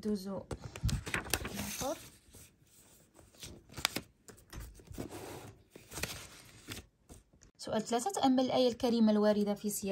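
Paper sheets rustle as they are slid and turned.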